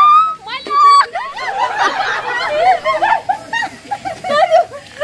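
Young women and children laugh and shout excitedly close by.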